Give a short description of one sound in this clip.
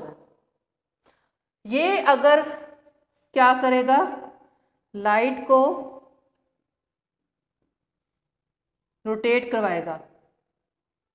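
A woman speaks calmly and clearly, close by, in short phrases.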